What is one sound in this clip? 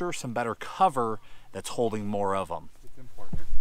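A man speaks calmly and up close.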